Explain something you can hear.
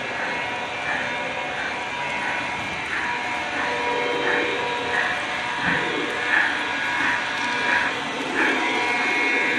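A model steam locomotive's sound system chuffs in a steady beat.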